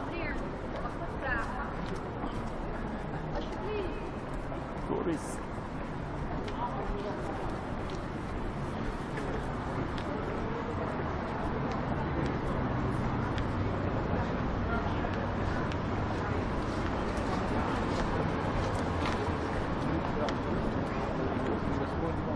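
Footsteps tap on wet pavement nearby.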